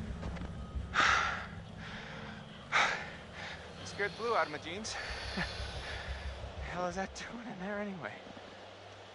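A young man speaks with emotion, close by.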